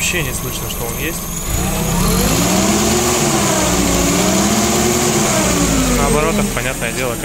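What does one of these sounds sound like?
An engine runs close by, its pitch rising and falling as it revs.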